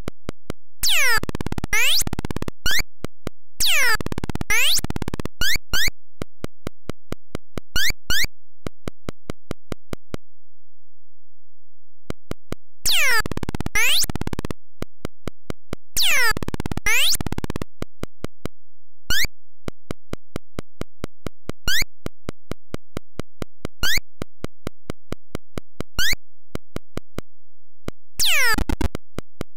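Electronic ticks patter in a fast, even beat.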